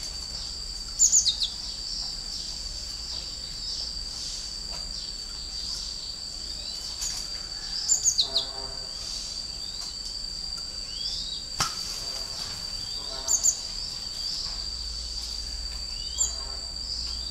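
A small caged bird chirps in short, sharp bursts close by.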